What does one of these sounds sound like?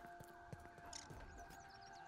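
Footsteps patter softly on the ground.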